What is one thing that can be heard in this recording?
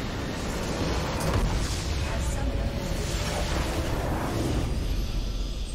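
A game's base structure explodes with a loud roaring blast.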